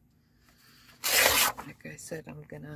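Paper rustles and crinkles as a sheet is folded.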